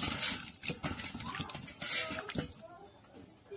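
Water splashes and sloshes as a hand stirs potato pieces in a pot.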